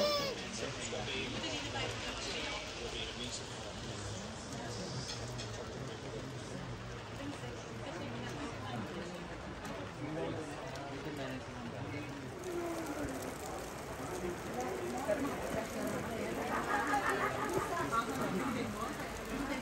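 A wide river flows steadily nearby.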